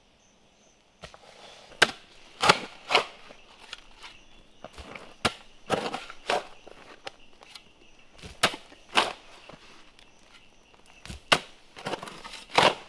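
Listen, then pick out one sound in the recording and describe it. A hoe chops into dry soil with repeated thuds.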